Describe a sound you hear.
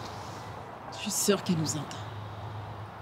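A woman answers gently and quietly, close by.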